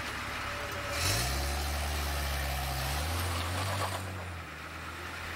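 A van rushes past close by.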